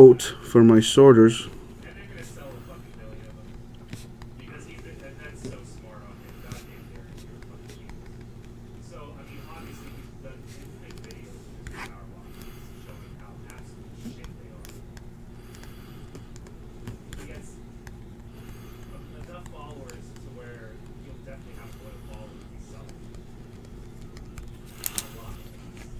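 Cards rustle and tap softly as they are handled.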